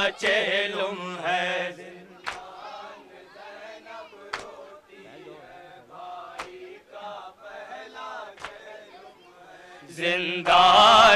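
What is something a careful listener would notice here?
A young man chants loudly into a microphone.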